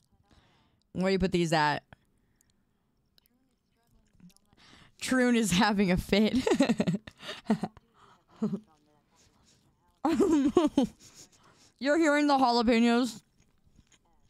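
A young woman talks animatedly into a close microphone, in short bursts.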